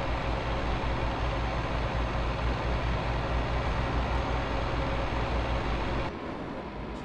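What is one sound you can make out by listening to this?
A diesel truck engine drones while cruising on a highway.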